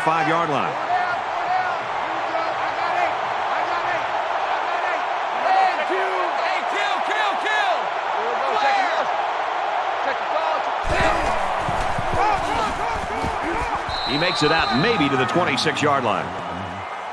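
A large stadium crowd roars steadily, then fades.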